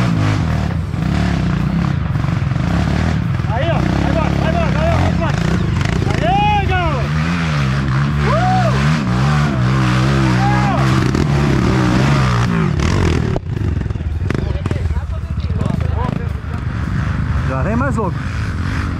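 Dirt bike engines rev and sputter close by.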